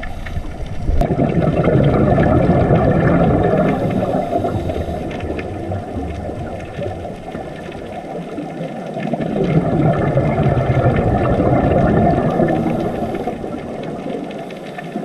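Scuba divers' exhaled bubbles rush and gurgle in loud bursts.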